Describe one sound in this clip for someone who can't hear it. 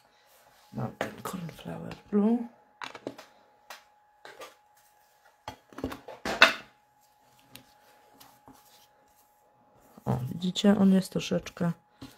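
A foam blending tool dabs and taps softly on paper.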